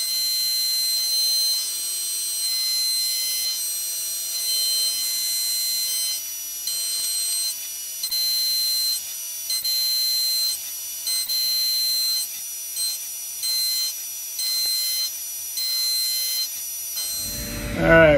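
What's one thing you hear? A milling machine whines steadily as its cutter grinds through metal, the pitch cutting in and out.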